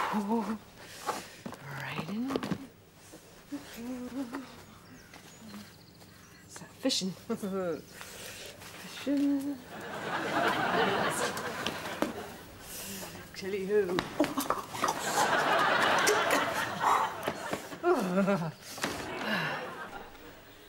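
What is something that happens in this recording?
A woman talks to herself in an agitated voice nearby.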